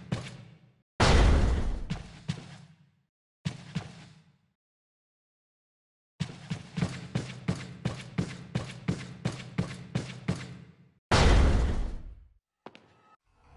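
A heavy door swings open with a thud.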